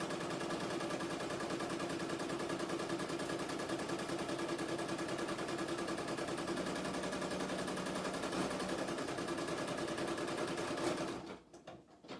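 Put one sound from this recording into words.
An embroidery machine stitches with a fast, steady rattling hum, then stops.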